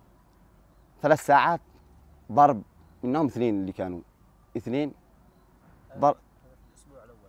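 A young man speaks calmly and with pauses, close to a microphone.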